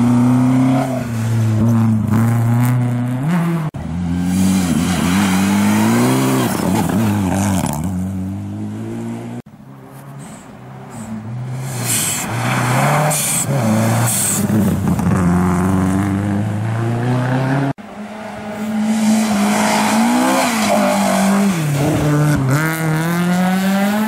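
A rally car engine roars loudly as it speeds past, revving up and down through gear changes.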